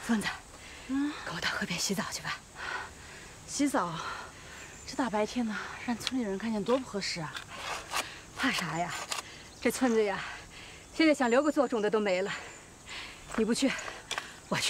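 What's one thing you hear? A young woman answers calmly nearby.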